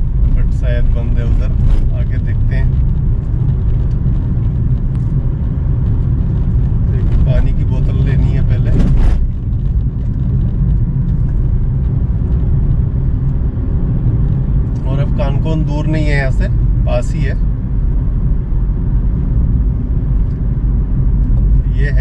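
Tyres crunch and rattle over a bumpy dirt road.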